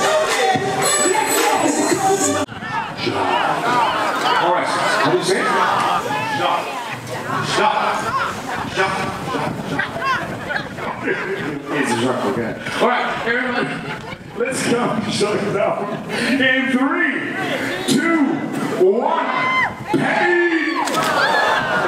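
A crowd cheers and laughs outdoors.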